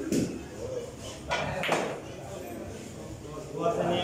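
A cue strikes a pool ball.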